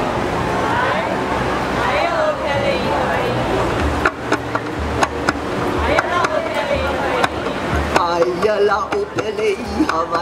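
Women chant together in a rhythmic call over loudspeakers outdoors.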